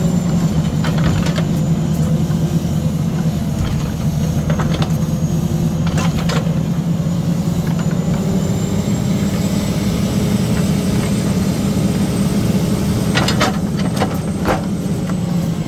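Logs knock and clunk against each other.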